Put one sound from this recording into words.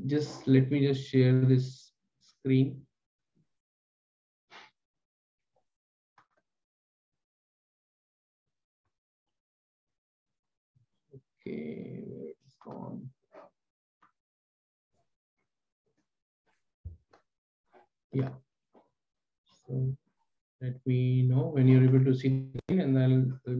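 A man speaks calmly through a headset microphone, in pauses, as on an online call.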